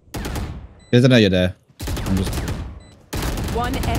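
A submachine gun fires a short burst of shots.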